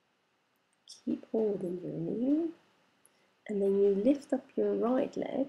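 A woman speaks calmly nearby, giving instructions.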